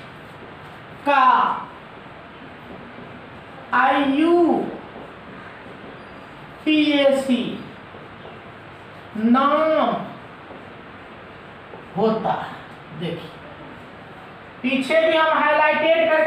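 A man speaks slowly in short phrases with pauses.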